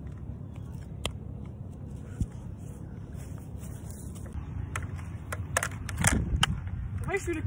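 A toy blaster clicks sharply a few times.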